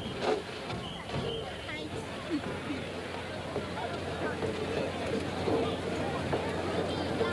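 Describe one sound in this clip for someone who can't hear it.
A large crowd chatters and calls out nearby, outdoors.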